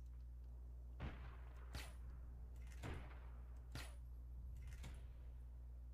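A sniper rifle fires several shots.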